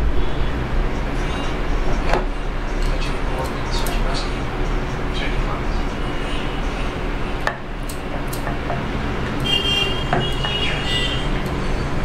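Dishes clink and knock on a glass tabletop.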